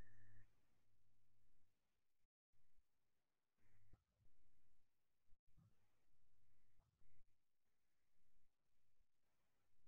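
A man speaks softly and slowly, close to a microphone.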